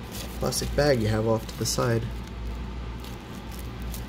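Plastic wrap crinkles close by.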